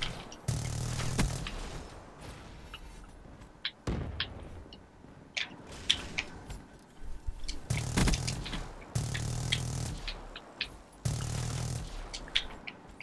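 Automatic gunfire rattles in short, loud bursts.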